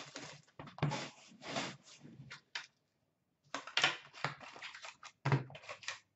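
Cardboard packaging rustles and crinkles in hands.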